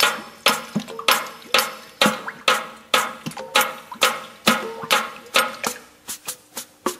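A drum beats loudly in a steady rhythm close by.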